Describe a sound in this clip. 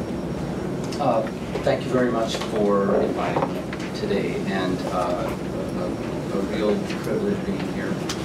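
A young woman speaks calmly into a microphone.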